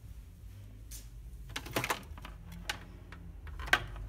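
A telephone handset clatters as it is lifted.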